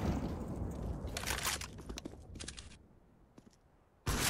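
A weapon clicks as it is switched.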